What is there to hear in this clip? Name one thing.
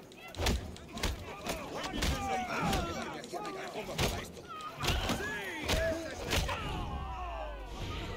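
Punches and blows land in a brawl.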